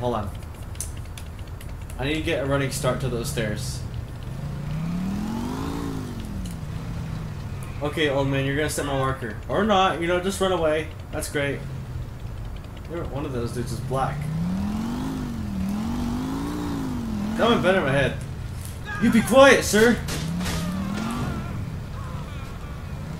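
A motorcycle engine hums and revs up and down as the motorcycle rides.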